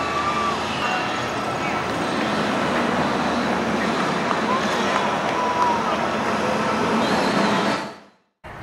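Riders scream from a passing roller coaster.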